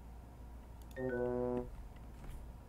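A short game chime rings out in rising tones.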